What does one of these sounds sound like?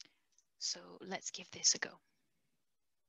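A young woman speaks briefly and calmly over an online call.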